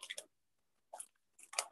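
Liquid pours into a plastic cup.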